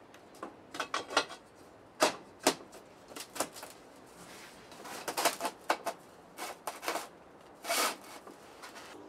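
Metal parts knock and clatter on a workbench.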